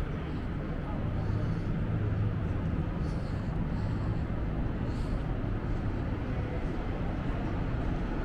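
A bus engine rumbles as it approaches.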